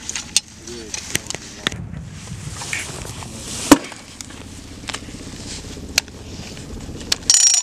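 Metal parts of a grenade launcher click and clack as it is loaded.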